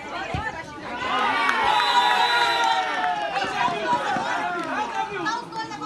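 Young men cheer loudly together.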